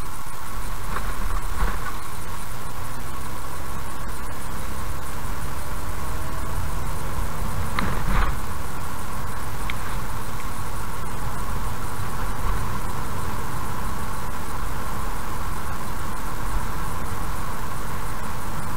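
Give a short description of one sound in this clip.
A car engine hums steadily inside as the car speeds up.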